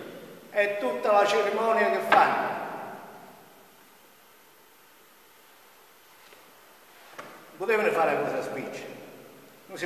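An elderly man speaks loudly with animation in a large echoing room.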